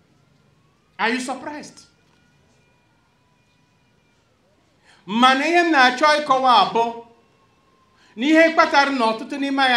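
An elderly man speaks slowly and with emphasis through a microphone, in short phrases with pauses.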